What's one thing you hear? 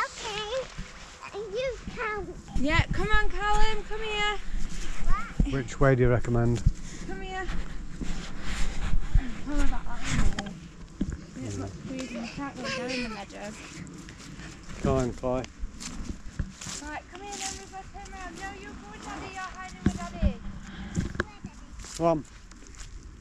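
A young girl chatters and calls out in a high voice.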